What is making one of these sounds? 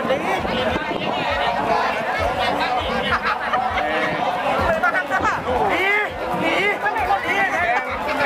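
A crew of rowers shouts and chants in unison outdoors.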